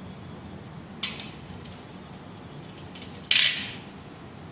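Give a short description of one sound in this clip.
Glass test tubes clink together.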